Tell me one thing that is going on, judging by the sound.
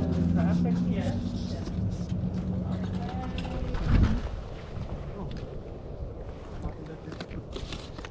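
Books and plastic items rustle and knock as hands handle them.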